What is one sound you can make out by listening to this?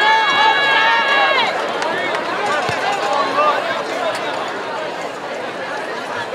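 A crowd cheers and shouts in an open-air stadium.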